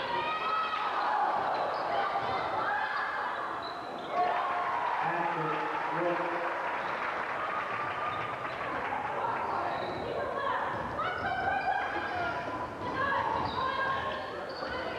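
Young women shout and call out across a large echoing gym.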